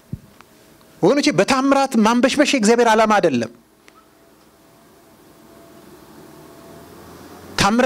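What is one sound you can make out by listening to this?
A middle-aged man speaks with animation into a microphone, with pauses.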